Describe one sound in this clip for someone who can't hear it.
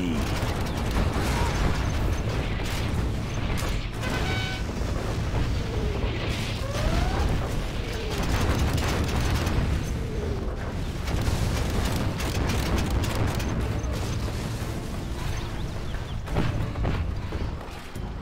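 Tank engines rumble steadily.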